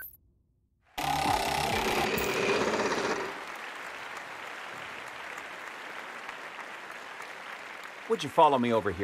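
A prize wheel spins with rapid clicking.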